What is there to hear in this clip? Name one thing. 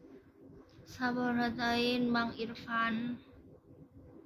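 A young woman speaks briefly and softly, close to the microphone.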